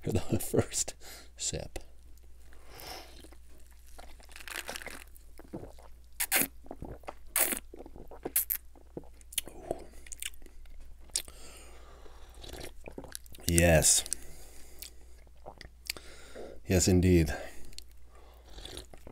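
A man sips and slurps a drink up close.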